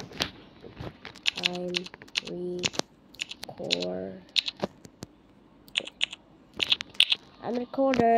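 Keys on a phone keyboard click quickly as someone types.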